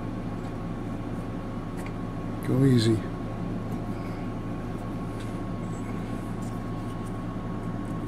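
Metal parts click and tap together as they are handled.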